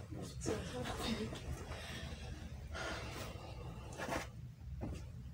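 Bedding rustles as a blanket is pulled over a bed.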